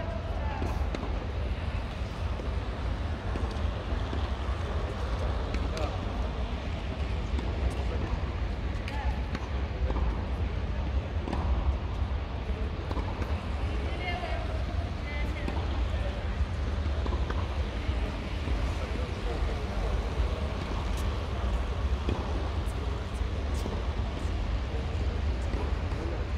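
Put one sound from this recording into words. Rackets strike a shuttlecock with light pops, echoing in a large hall.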